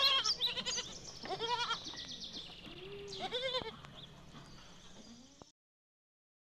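Goats bleat close by.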